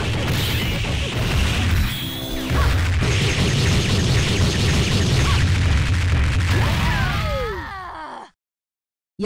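Rapid punches and kicks land in a fast flurry of heavy thuds and crashes.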